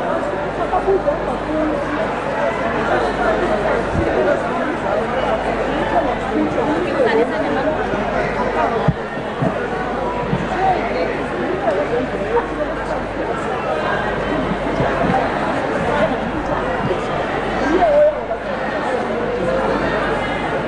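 Many people chatter and murmur in a large crowd nearby.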